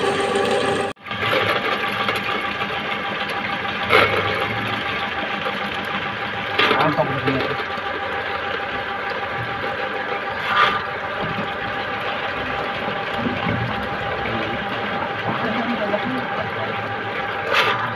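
Dirty water gushes and splashes out of a drainpipe into a pit.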